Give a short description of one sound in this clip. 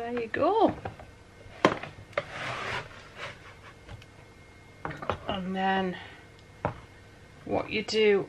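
Foam pieces scrape and slide across a smooth board.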